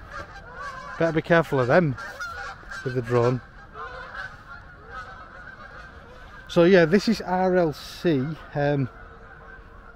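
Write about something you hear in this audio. Crows caw loudly overhead.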